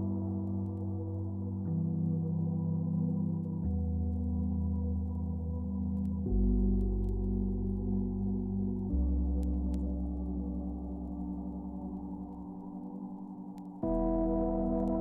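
Electronic music plays steadily, with sustained chords shifting every few seconds.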